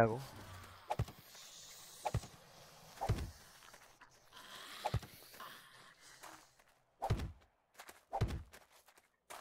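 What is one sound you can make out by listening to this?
Heavy blocks thud one after another as they are set down.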